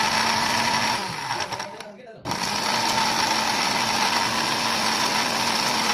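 A blender whirs loudly, pauses briefly, then starts up again.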